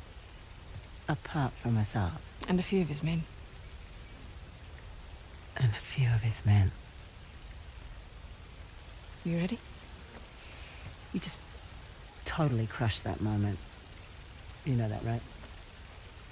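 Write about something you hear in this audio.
Two young women talk quietly with each other, close by.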